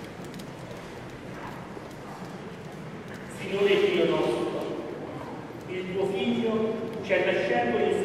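A middle-aged man chants through a microphone in a large echoing room.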